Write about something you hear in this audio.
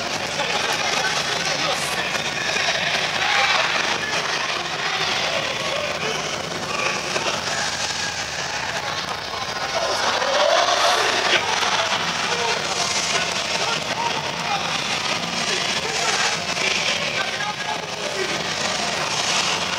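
Young men and women shout loudly in chorus.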